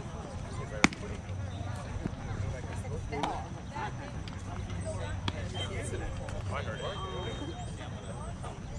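Players shout to each other across an open field.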